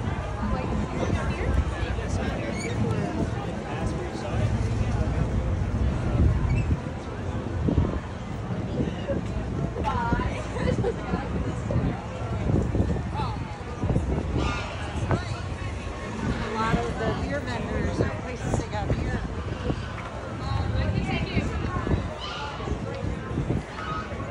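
A crowd of people chatter in the open air nearby.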